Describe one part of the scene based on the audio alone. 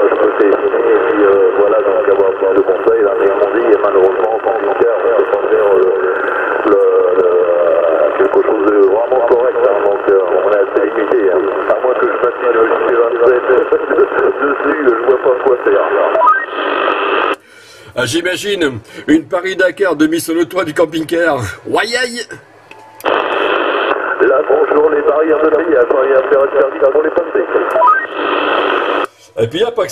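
A man talks through a crackly, muffled radio loudspeaker.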